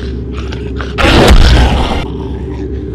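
A kick lands with a loud thud.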